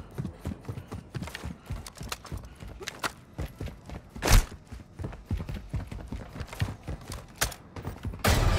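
Quick footsteps patter on hard floors and stairs.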